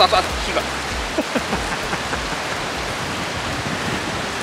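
A river flows nearby with a steady rush.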